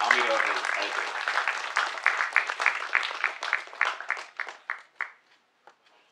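A crowd applauds in a hall.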